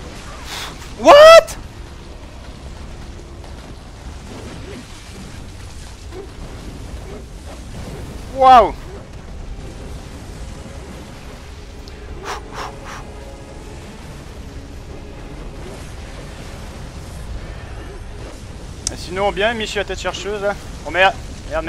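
A burst of flame roars out in a sudden whoosh.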